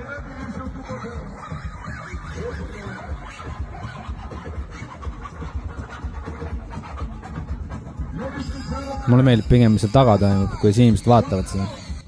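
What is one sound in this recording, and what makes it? Dance music with a thumping beat plays from loudspeakers.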